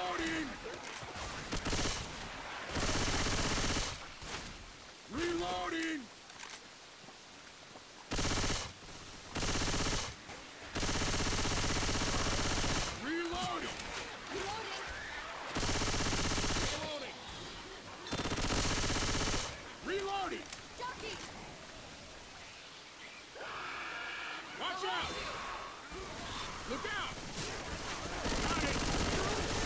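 A shotgun fires in loud bursts.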